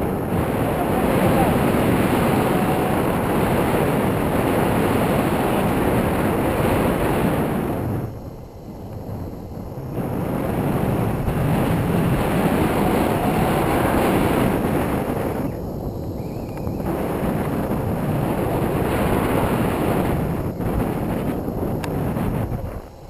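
Strong wind roars and buffets loudly, close by, outdoors high in the air.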